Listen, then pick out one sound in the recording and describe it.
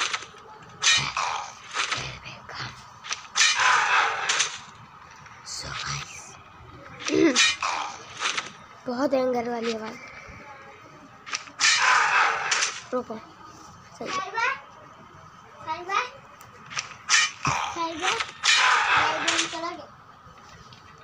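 Cartoon fight sound effects clash and whoosh in short bursts.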